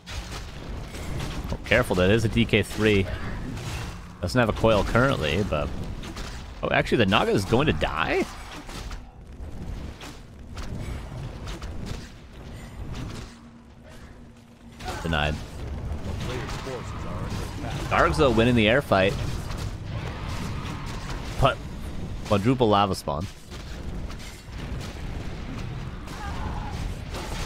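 Weapons clash and spells burst in a battle.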